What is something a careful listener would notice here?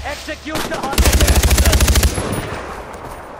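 A rifle fires a rapid burst of shots.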